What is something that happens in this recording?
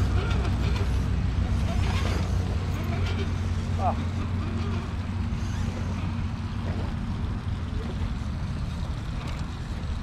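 A small electric motor whirs.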